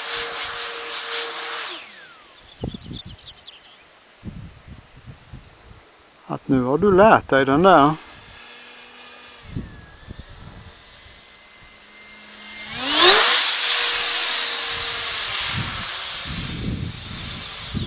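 An electric model jet whines in the air and rises in pitch as it swoops past close.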